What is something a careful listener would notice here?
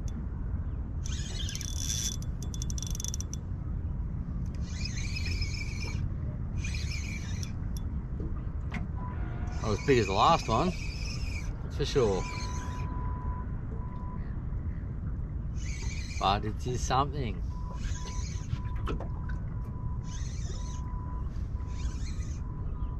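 A fishing reel whirs and clicks in short bursts.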